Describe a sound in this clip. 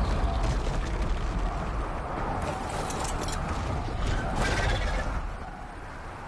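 Strong wind roars and gusts.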